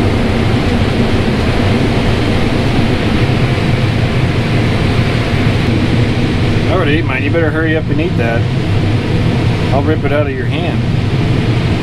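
A combine harvester engine drones steadily from inside the cab.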